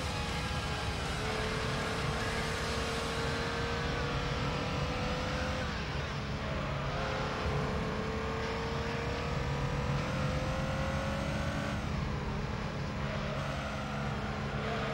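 A racing car engine revs higher and higher, dropping in pitch at each gear change.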